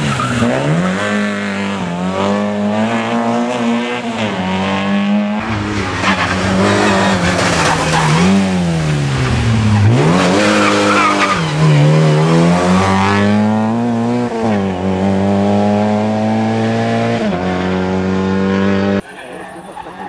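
A rally car engine revs hard and roars past, shifting gears.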